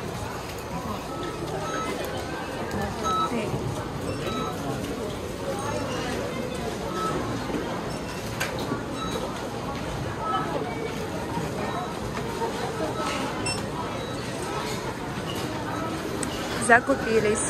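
A crowd murmurs in a busy indoor space.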